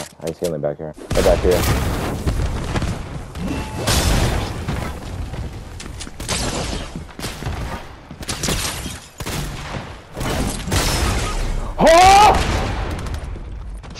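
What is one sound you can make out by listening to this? Gunshots and game effects crack and thud in quick bursts.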